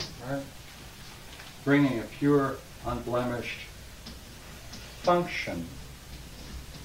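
An elderly man speaks slowly, as if lecturing.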